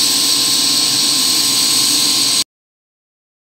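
An arc welder hisses and crackles steadily.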